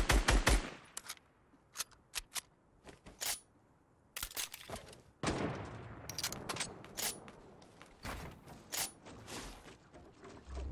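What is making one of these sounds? Wooden building pieces snap into place with sharp clacks.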